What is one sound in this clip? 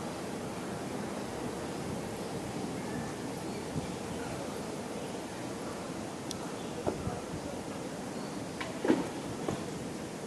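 An electric guitar plays outdoors.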